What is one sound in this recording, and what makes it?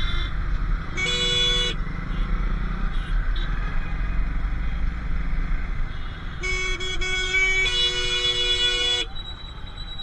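Vehicle horns honk loudly nearby.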